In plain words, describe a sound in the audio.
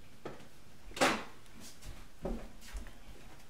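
A man's footsteps thud and bump close by.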